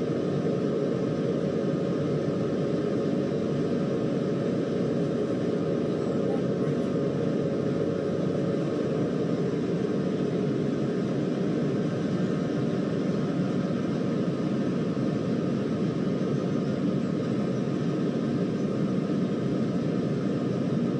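A train engine rumbles steadily as the train runs along the tracks.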